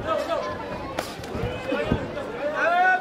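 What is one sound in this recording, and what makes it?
Gloved punches thud against a body.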